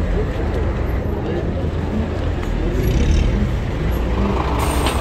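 Traffic drives past on a street outdoors.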